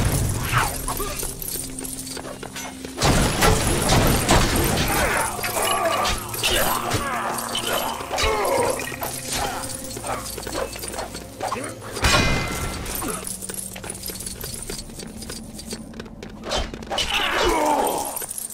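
Coins jingle and clink as they scatter.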